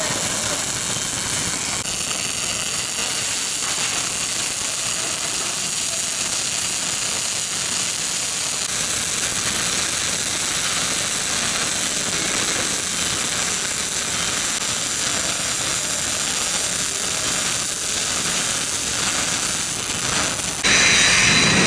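Arc welding crackles and hisses steadily.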